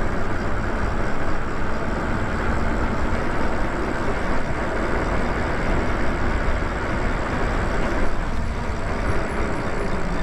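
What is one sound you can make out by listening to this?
Wind rushes steadily past a moving rider.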